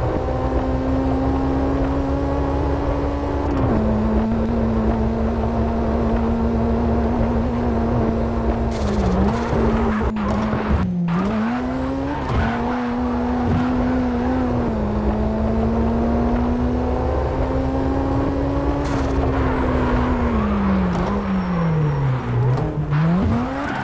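A racing car engine roars at high revs, dropping and rising as the car brakes and accelerates.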